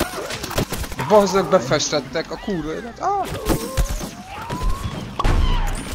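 Cartoonish blaster shots fire in quick bursts.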